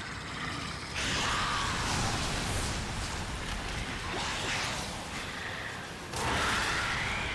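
A fiery explosion rumbles and roars.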